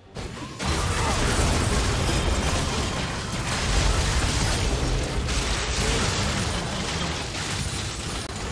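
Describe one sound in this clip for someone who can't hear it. Magic spells blast and crackle in a hectic game battle.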